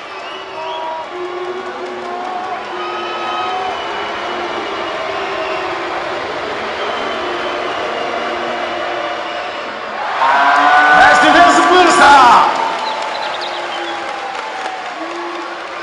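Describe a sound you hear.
A large crowd chants and sings in a big echoing arena.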